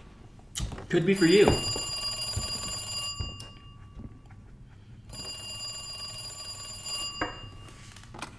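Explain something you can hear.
An old telephone rings loudly in repeated bursts.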